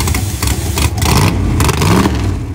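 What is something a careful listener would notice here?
A drag car engine revs up and down sharply.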